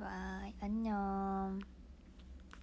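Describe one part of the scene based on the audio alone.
A young woman sings two drawn-out notes close by.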